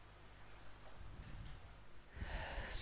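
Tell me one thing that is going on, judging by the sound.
A middle-aged man lectures calmly through a headset microphone.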